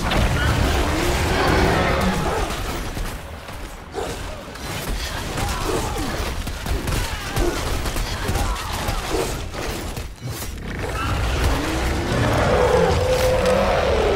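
Magic blasts crackle and boom in quick succession.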